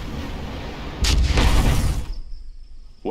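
A large explosion booms with a deep roar.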